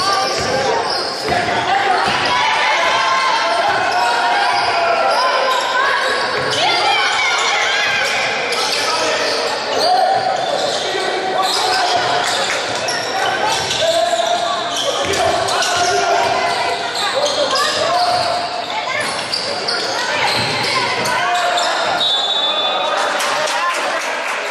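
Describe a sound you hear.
A crowd of spectators murmurs and calls out in an echoing hall.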